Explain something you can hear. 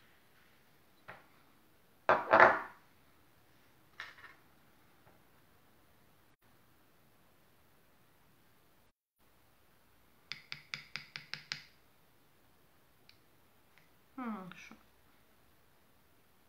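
A spoon clinks against small glass jars.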